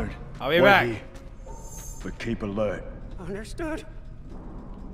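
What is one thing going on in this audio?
A young man speaks briefly and calmly, close to a microphone.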